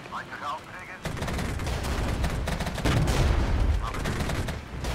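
Explosions rumble heavily.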